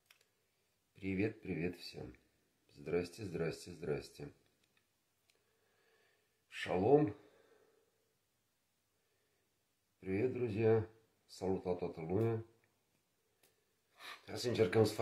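A middle-aged man speaks calmly in short phrases close to a microphone.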